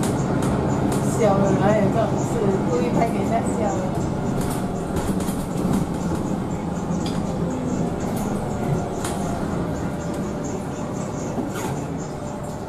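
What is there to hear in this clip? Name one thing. A bus engine hums steadily while the bus drives along.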